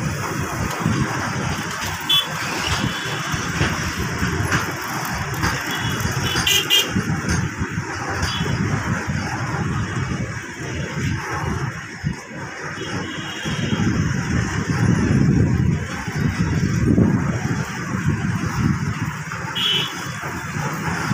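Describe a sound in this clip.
A freight train rumbles and clanks steadily along the rails close by.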